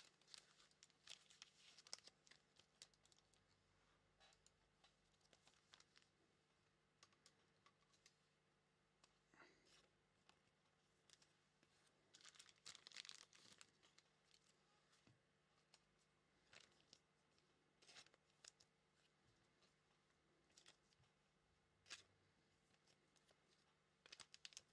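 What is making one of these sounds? Foil card packs crinkle and rustle close by.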